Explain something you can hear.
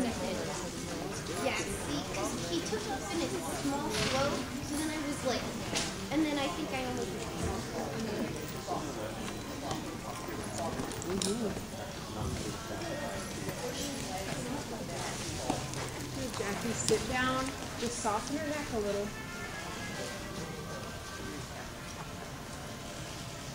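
Women talk quietly nearby in a large echoing hall.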